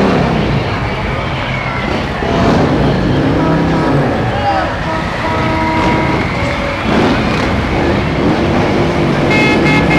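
A heavy truck engine rumbles slowly by.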